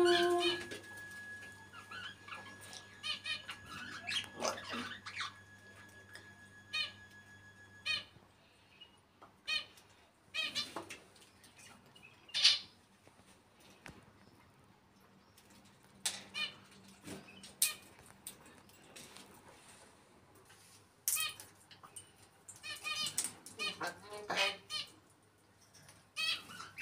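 A parrot whistles and squawks close by in short bursts.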